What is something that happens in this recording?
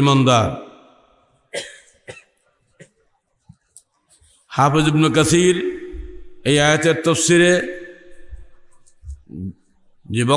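An elderly man speaks slowly and earnestly into a microphone, heard through a loudspeaker with some echo.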